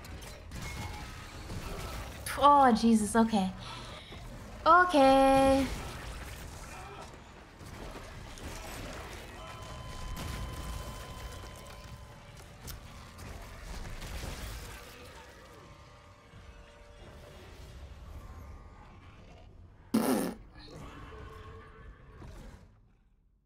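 A monster snarls and growls.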